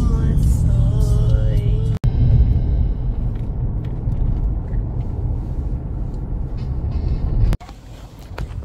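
A car engine rumbles steadily while driving on a road.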